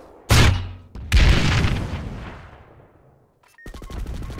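Two heavy explosions boom and rumble away.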